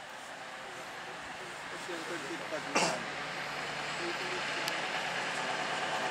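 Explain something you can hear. A vintage diesel bus approaches in the distance.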